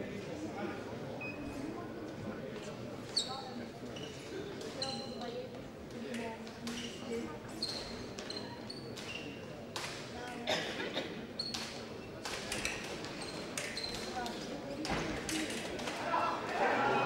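Fencers' feet thump and shuffle quickly on a hard floor.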